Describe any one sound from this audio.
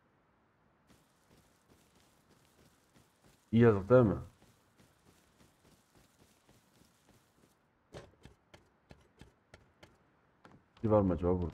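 Footsteps thud softly on wooden boards.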